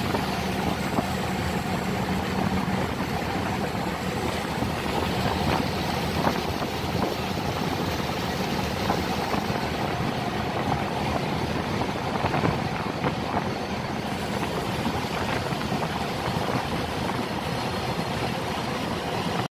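Water rushes and splashes against the side of a moving boat.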